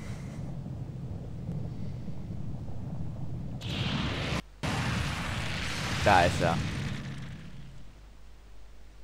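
A deep rumbling roar swells and fades.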